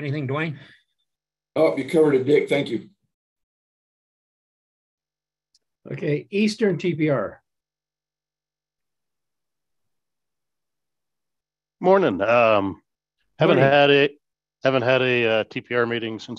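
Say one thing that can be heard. Men speak in turn over an online call, calmly, in short phrases with pauses.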